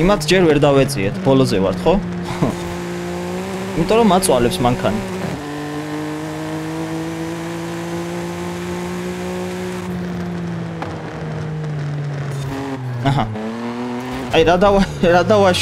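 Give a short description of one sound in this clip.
A car engine roars steadily, its pitch rising and falling with gear changes.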